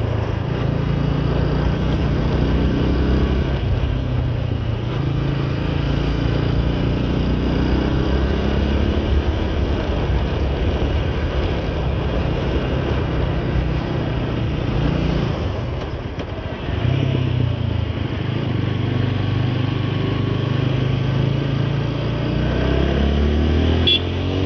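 A motorcycle engine hums and changes pitch as the rider shifts and accelerates.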